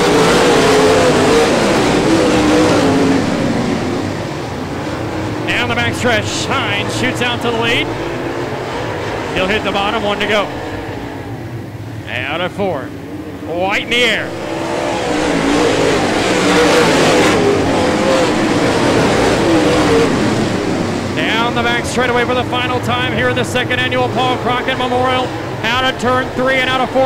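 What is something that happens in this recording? Race car engines roar loudly around a dirt track.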